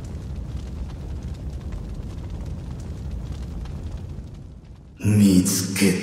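A fire crackles and rumbles.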